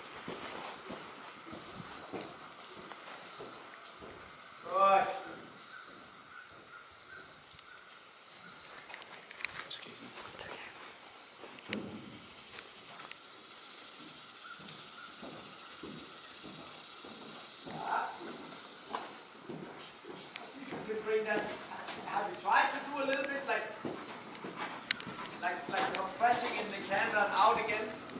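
A horse's hooves thud softly on sand at a trot.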